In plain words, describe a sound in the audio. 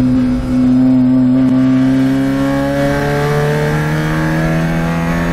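A race car engine roars loudly from inside the cabin, its pitch rising steadily as it accelerates.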